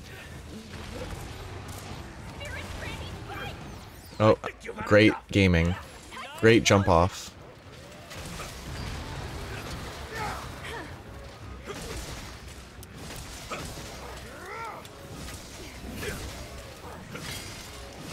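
Weapon blows strike a monster with sharp impacts.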